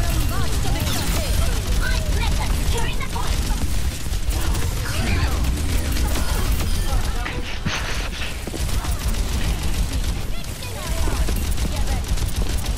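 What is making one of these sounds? Guns fire rapidly in bursts.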